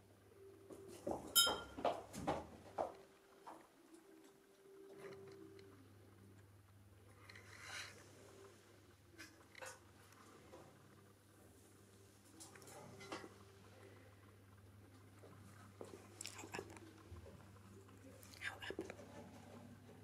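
A cockatiel chirps and whistles nearby.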